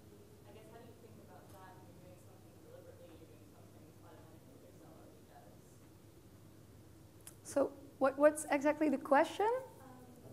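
A young woman speaks clearly through a microphone.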